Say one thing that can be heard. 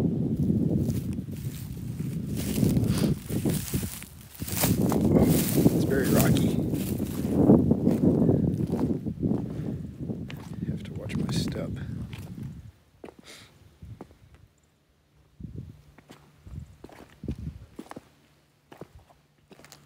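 Footsteps crunch on loose rocks and gravel.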